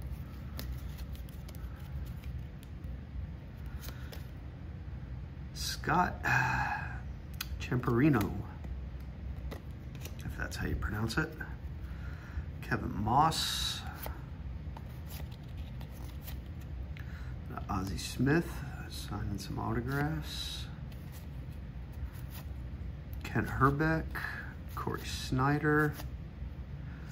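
Stiff trading cards slide and flick against each other as they are sorted by hand.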